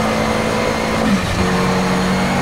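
A racing car engine briefly drops in pitch as a gear changes.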